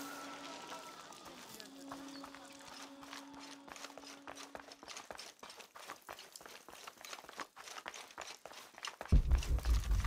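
Footsteps crunch on a rocky floor.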